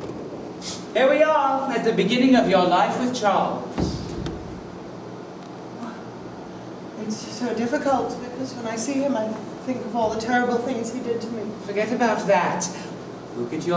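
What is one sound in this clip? A woman speaks clearly in a theatrical way.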